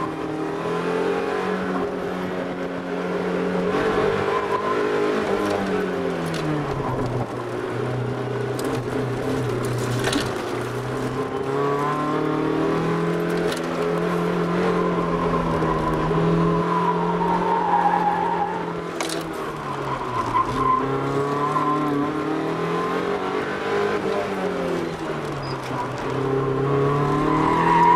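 A car engine roars from inside the cabin, its pitch rising and falling as the car speeds up and slows through bends.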